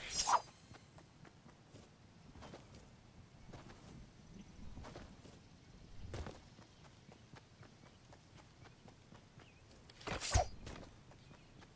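Footsteps patter on grass at a run.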